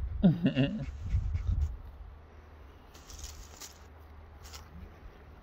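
A dog pants rapidly nearby.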